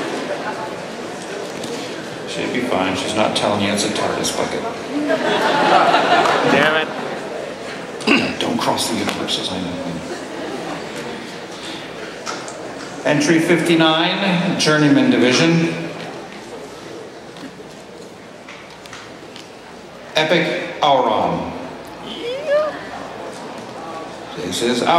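A man speaks with expression through a microphone.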